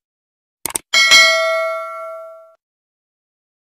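A small bell chimes and rings out.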